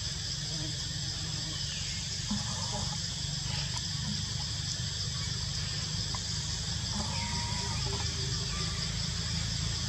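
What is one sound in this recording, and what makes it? A monkey chews food softly.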